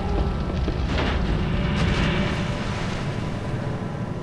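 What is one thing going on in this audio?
Something heavy splashes into water.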